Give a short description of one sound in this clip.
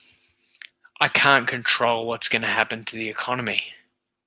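A man speaks calmly and closely through a headset microphone on an online call.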